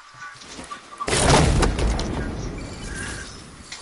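A supply crate bursts open with a loud whooshing rush.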